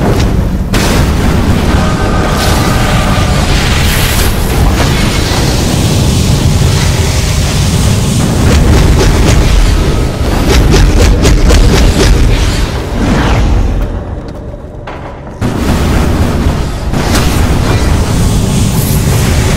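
Fiery blasts roar and crackle in a fight.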